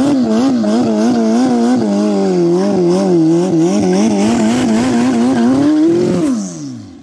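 A motorcycle's rear tyre squeals as it spins on the asphalt.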